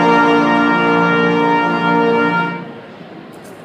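A brass band plays a loud, sustained chord outdoors.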